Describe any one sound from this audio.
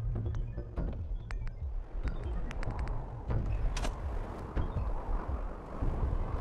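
Interface clicks sound as menu items are picked.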